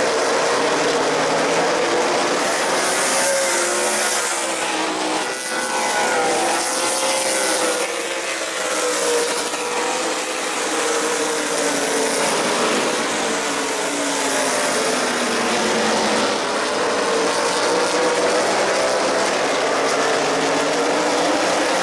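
Race car engines rise and fall in pitch as the cars pass by.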